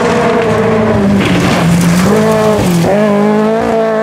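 Gravel sprays and crackles under spinning tyres.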